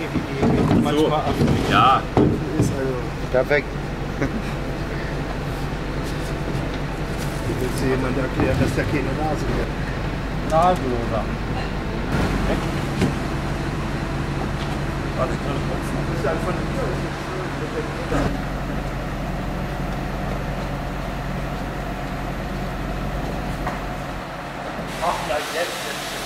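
Men talk and call out to each other nearby.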